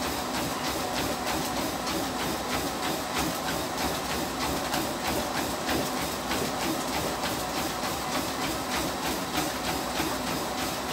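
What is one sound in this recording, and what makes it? Footsteps pound quickly and rhythmically on a treadmill belt.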